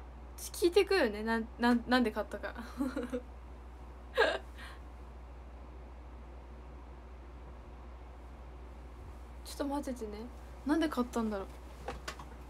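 A young woman talks cheerfully and close to a microphone.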